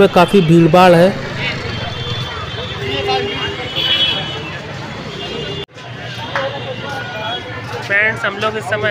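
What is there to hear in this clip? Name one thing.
A crowd chatters in a busy outdoor street.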